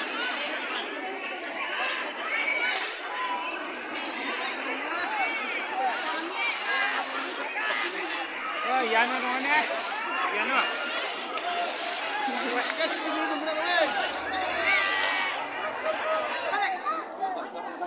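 A large crowd of men and women shouts and chatters outdoors.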